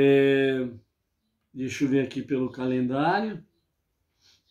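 An elderly man chants in a slow, drawn-out voice close to a microphone.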